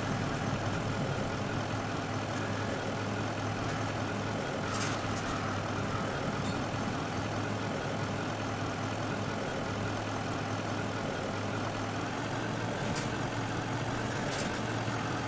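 A truck engine labours steadily as the truck churns through mud.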